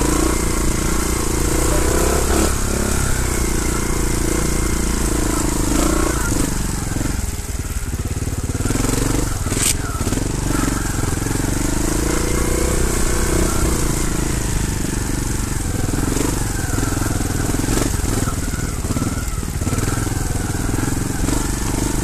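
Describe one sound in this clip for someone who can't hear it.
A bicycle's gears and frame clatter over bumps.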